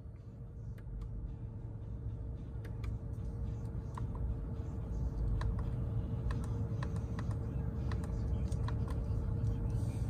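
Buttons on a steering wheel click softly, again and again.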